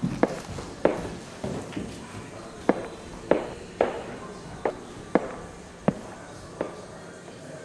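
Footsteps thud on a hard floor indoors.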